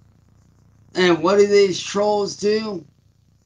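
A man sings loudly and expressively close to a microphone.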